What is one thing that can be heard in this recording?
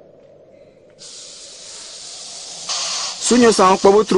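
A snake hisses loudly up close.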